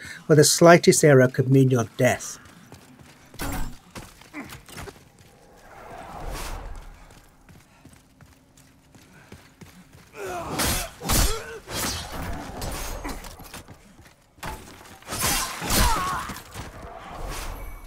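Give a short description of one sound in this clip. Footsteps scrape on stone.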